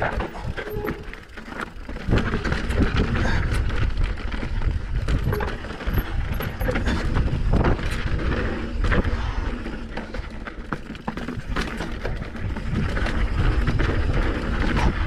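Wind rumbles loudly against a helmet microphone.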